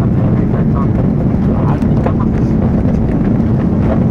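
Tyres rumble and thump on a runway.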